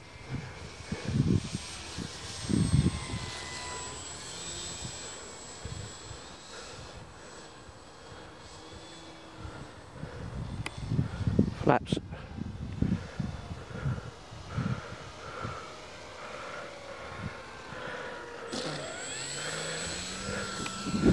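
A small model airplane's electric motor whines high overhead.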